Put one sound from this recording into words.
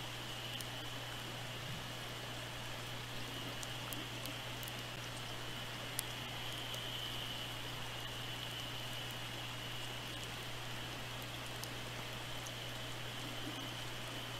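A steady underwater hiss fills the water.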